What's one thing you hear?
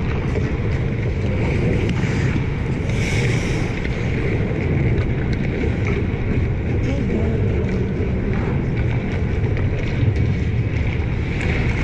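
Hockey sticks clack against pucks and the ice.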